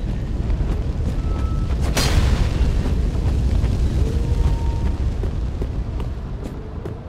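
Fire crackles and roars close by.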